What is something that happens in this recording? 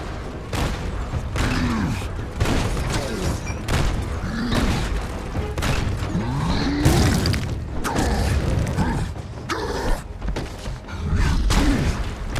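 Debris smashes and clatters apart.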